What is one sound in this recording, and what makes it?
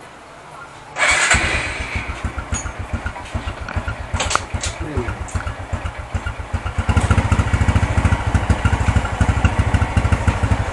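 A motorcycle engine starts and runs with a fast, steady putter, growing louder.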